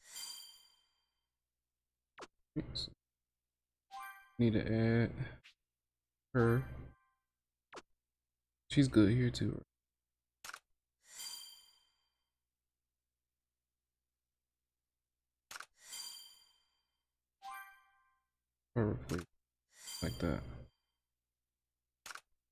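Short bright menu chimes ring as selections are made.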